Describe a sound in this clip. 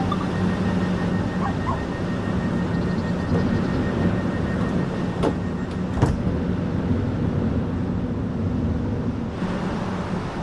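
A train's engine hums steadily from inside a carriage.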